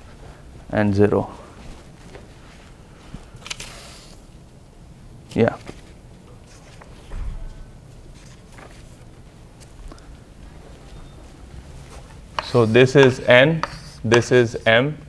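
A man speaks out loud in short bursts, with long pauses between them.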